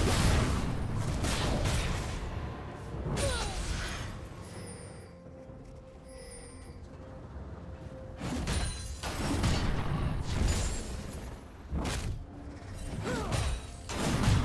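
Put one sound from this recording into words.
Magic blasts and clashing weapons burst in a loud fight.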